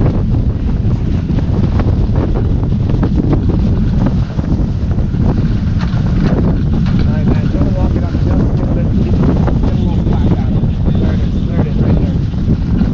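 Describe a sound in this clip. Strong wind roars across a microphone outdoors.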